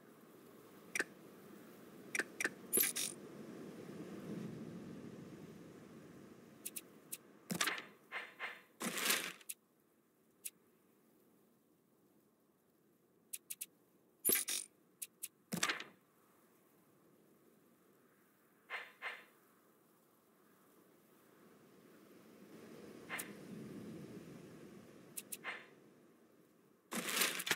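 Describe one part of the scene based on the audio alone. Short game interface clicks and chimes sound now and then.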